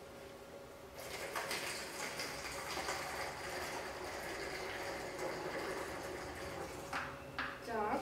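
Water pours from a bottle into a container.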